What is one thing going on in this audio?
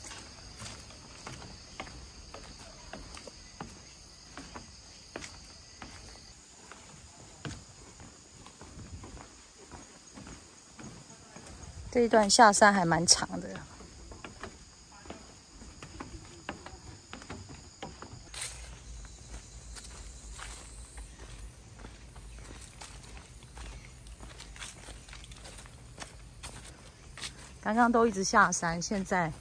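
Footsteps tread on steps and a dirt path.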